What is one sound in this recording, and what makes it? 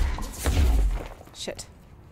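Loose papers whoosh and flutter through the air.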